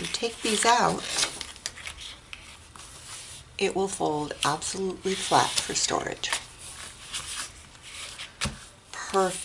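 Card stock rustles as hands fold and press it flat.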